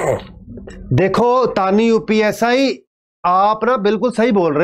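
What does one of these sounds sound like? A young man speaks loudly and with animation into a microphone.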